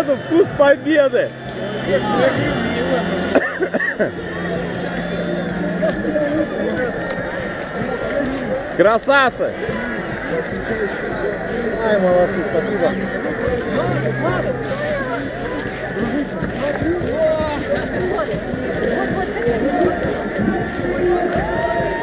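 A crowd of men and women chatter and shout nearby outdoors.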